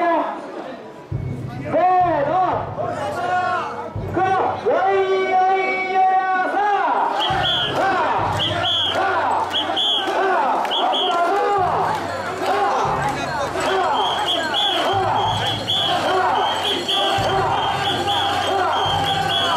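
A crowd of men chants loudly and rhythmically outdoors.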